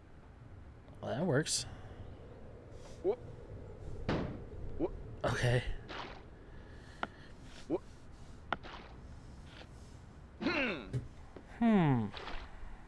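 A young man talks and exclaims with animation into a close microphone.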